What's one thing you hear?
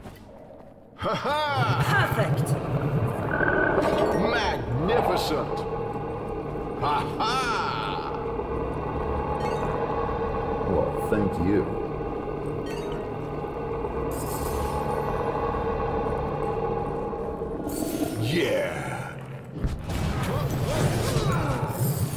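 Blows and magic spells crash together in a fierce fight.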